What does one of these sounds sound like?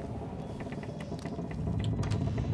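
A small object is picked up with a light clatter.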